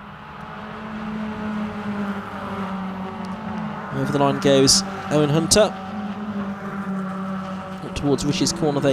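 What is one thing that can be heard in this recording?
A racing car engine roars loudly as it speeds past.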